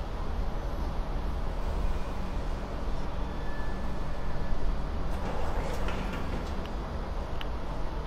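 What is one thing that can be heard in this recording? Footsteps clank on a metal walkway and stairs.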